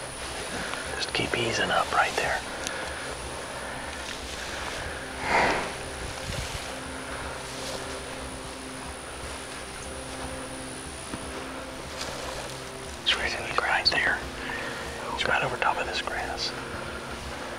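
A man whispers quietly close by.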